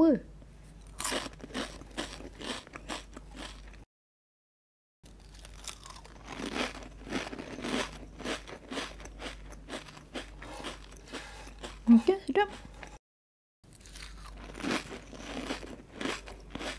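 Crisp chips crunch loudly as a woman chews them up close.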